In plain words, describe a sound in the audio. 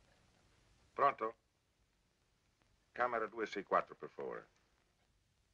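A man speaks into a telephone, close by.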